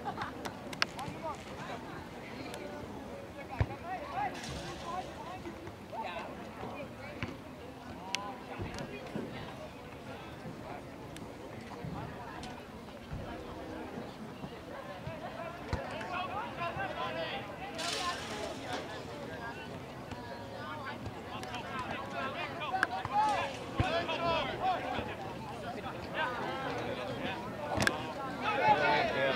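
A crowd of spectators cheers and calls out from a distance outdoors.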